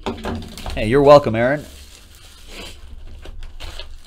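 Plastic wrappers crinkle as hands tear open a card pack.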